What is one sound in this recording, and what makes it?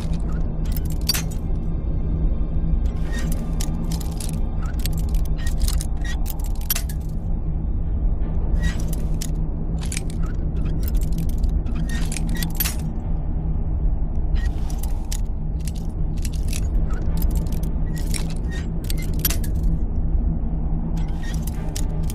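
A metal lockpick snaps in a lock.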